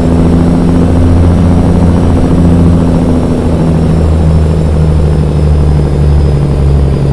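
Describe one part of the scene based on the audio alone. A truck's diesel engine rumbles loudly and steadily, its pitch shifting slightly as it runs.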